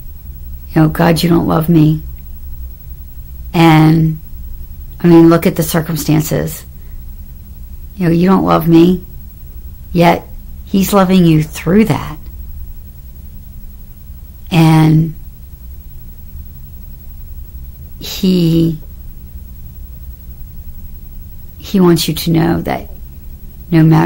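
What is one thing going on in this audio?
A middle-aged woman talks warmly and close to the microphone, in short bursts with pauses.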